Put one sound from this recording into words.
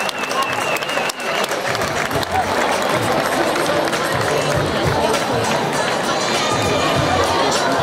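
A crowd of people chatters.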